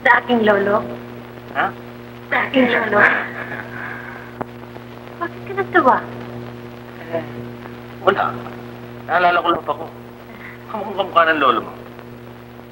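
A man speaks cheerfully nearby, heard through an old, hissy recording.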